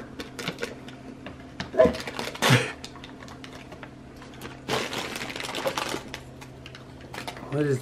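Wrapping paper crinkles and rustles.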